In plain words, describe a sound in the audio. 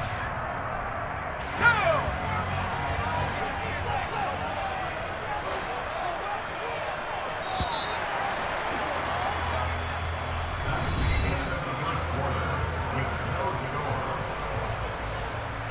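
A large stadium crowd murmurs and roars steadily in a wide open space.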